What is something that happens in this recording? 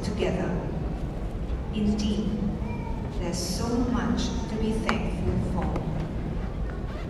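Several women murmur and chat quietly in a large echoing hall.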